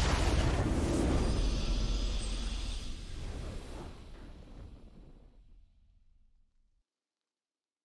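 A triumphant victory fanfare plays and fades out.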